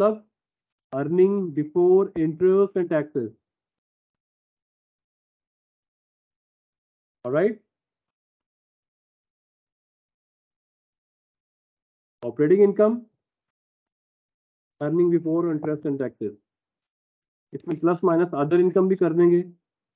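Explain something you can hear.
A man speaks calmly into a microphone, heard as if through an online call, with pauses between phrases.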